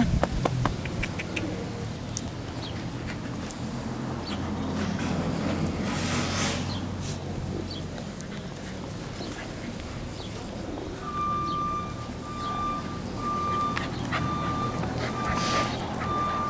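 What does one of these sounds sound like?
Footsteps scuff on dry grass.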